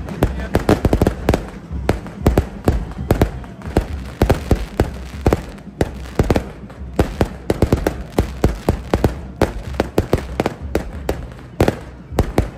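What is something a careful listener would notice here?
Fireworks burst with loud, rapid bangs and crackles outdoors.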